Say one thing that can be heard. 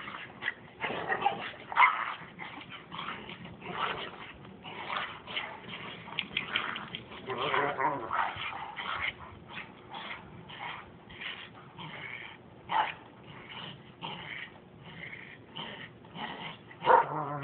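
Dogs growl and yip as they wrestle playfully.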